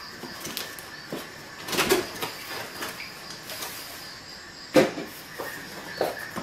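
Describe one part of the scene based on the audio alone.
A cardboard flap scrapes and rustles as it is pulled open.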